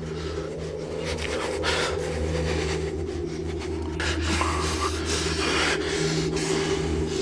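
An elderly man speaks close by.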